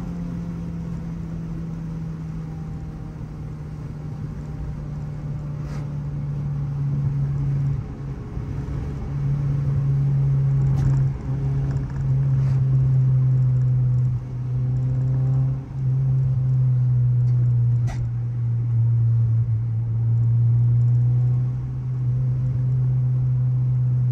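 A car engine drones loudly from inside the car, dipping briefly now and then as gears change.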